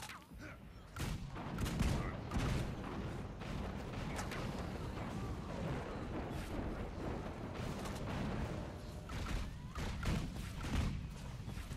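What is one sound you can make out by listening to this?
Magic spells crackle and blast in a fierce battle.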